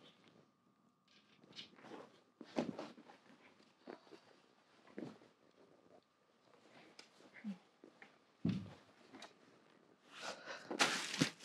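Hangers clatter and clothes rustle close by.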